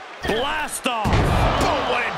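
A body slams down hard onto a wrestling mat.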